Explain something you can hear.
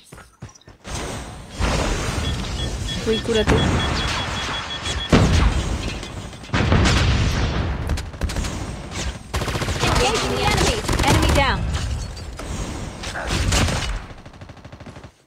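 Gunfire from a video game rattles in bursts.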